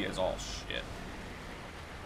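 A man talks casually into a microphone, close by.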